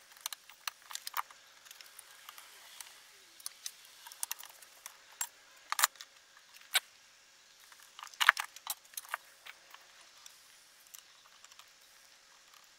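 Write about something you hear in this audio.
Metal and plastic parts of an electronic device clack and rattle as hands handle it.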